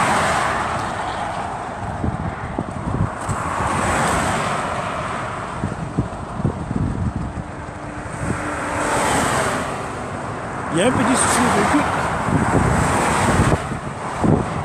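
Cars rush past on a highway and fade.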